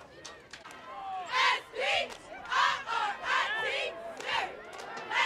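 A crowd of young men shouts and cheers loudly in bursts outdoors.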